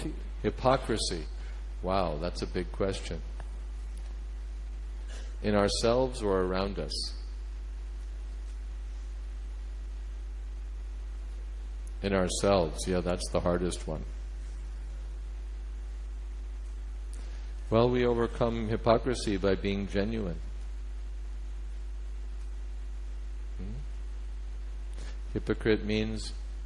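A middle-aged man speaks calmly into a microphone, in short phrases with long pauses.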